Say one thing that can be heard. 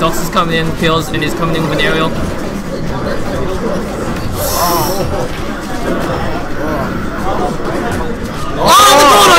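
Cartoonish fighting sound effects whoosh and thump.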